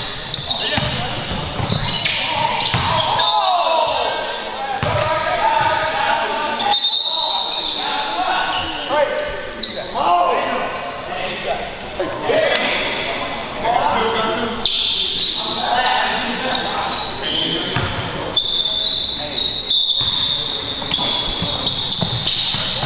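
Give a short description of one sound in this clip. Sneakers squeak sharply on a wooden floor in an echoing hall.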